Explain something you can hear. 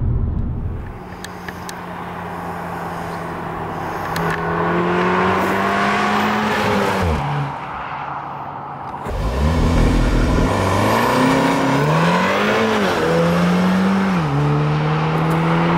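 A car's engine roars as it accelerates past, rising and falling in pitch.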